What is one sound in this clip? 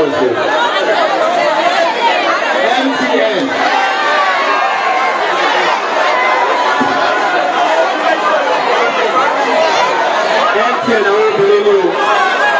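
A large crowd of girls and women chatters and calls out loudly.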